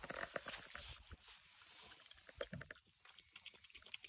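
A dog crunches dry food from a bowl.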